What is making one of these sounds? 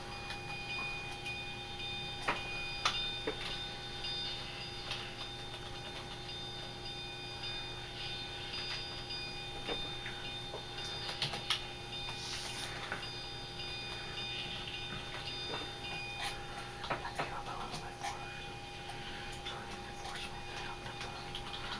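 A steam locomotive rumbles steadily.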